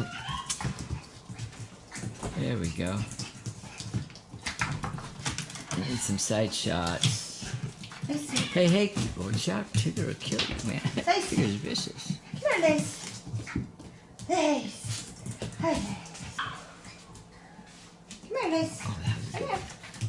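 A puppy's claws click and scrabble on a hard floor.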